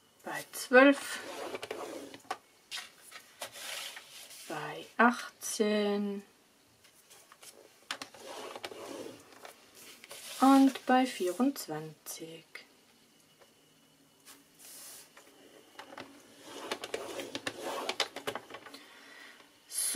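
A paper trimmer blade slides along with a soft scraping swish.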